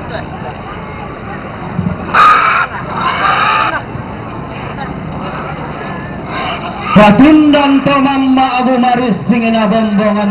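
A crowd of people murmurs nearby outdoors.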